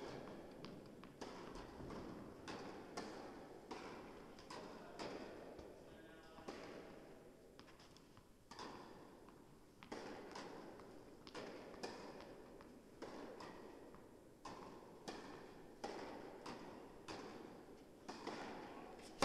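A tennis ball bounces repeatedly on a court in a large echoing hall.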